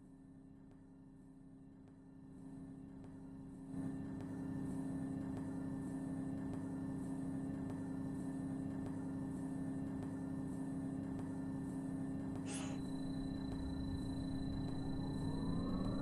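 A bus engine hums steadily while idling.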